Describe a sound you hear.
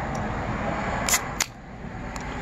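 A drink can snaps open with a short hiss.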